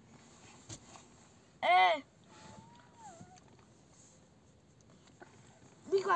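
A small boy laughs.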